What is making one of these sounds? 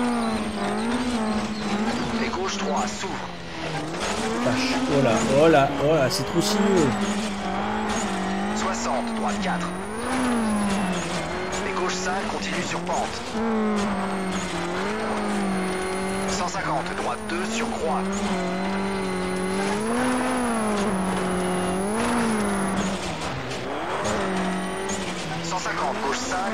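A car engine revs and drones steadily, rising and falling in pitch with gear changes.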